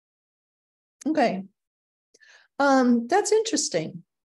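An elderly woman speaks calmly through an online call.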